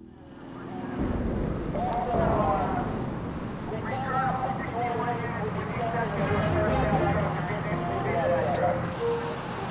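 A fire engine's motor rumbles as it pulls away.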